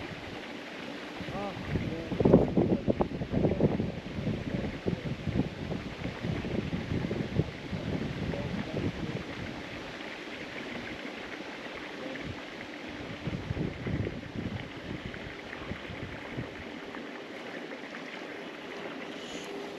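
A fishing reel clicks softly as its handle is wound.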